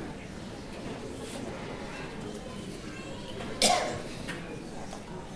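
A crowd murmurs and chatters quietly in a large echoing hall.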